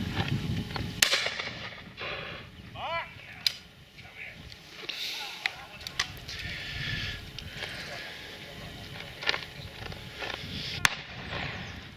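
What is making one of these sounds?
A shotgun fires loud, sharp shots outdoors.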